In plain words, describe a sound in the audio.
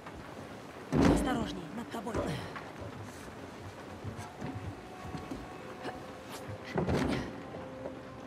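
A climber's hands grab onto a ledge with a heavy thud.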